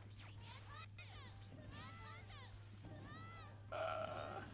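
Game sound effects chirp and whoosh as fighters attack.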